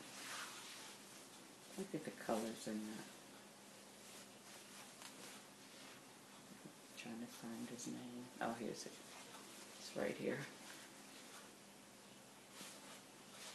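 Fabric rustles as it is unfolded and shaken.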